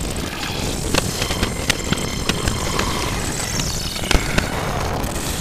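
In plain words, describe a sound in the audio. Pistol shots fire in quick bursts.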